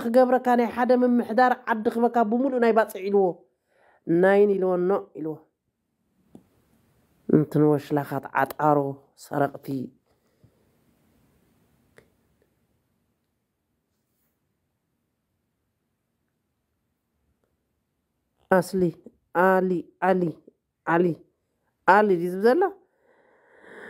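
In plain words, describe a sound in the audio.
A woman sings or recites close to a microphone, with long pauses.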